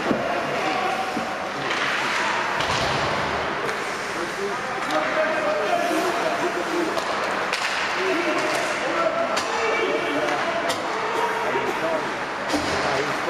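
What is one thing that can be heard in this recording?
A crowd of spectators murmurs and chatters nearby.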